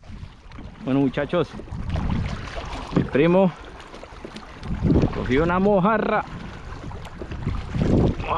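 A paddle dips and splashes in water.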